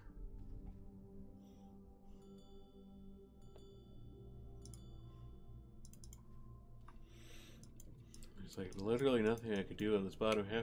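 Soft game music plays with chiming notes.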